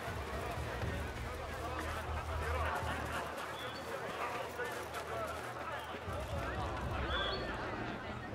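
Quick footsteps run across sand and grass.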